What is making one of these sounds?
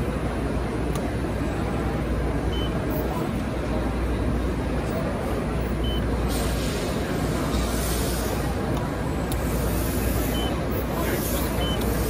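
A press brake clunks as it bends sheet metal.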